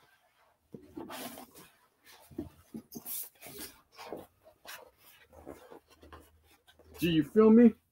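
A poster's paper rustles and crinkles.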